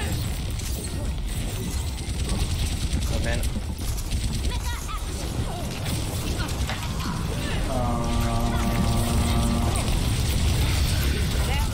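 A young man talks casually through a headset microphone.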